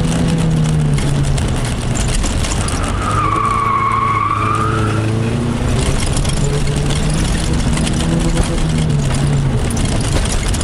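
Tyres rumble and crunch over rough dirt.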